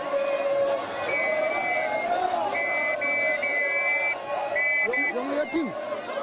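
A man blows a whistle in sharp shrill bursts.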